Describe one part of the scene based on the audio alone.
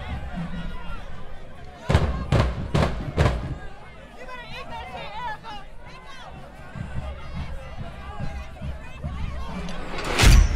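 A crowd of people chatters and shouts in an open-air stadium.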